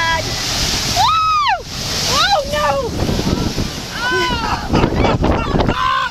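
Waves crash against rocks and spray into the air.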